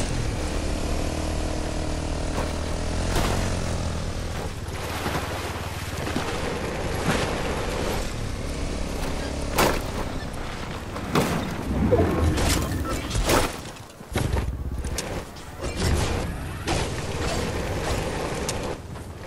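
A quad bike engine hums and revs.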